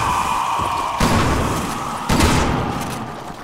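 Gunshots bang loudly in an echoing space.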